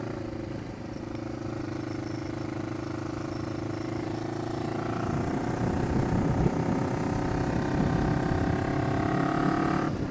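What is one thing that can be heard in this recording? Wind buffets a microphone on a moving motorcycle, growing louder.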